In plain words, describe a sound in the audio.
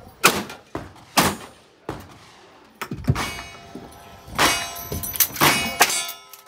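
A rifle fires sharp, loud shots outdoors.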